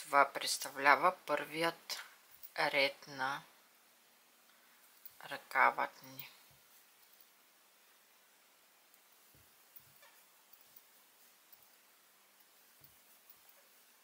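Yarn rustles softly as a crochet hook pulls a loop through knitted fabric.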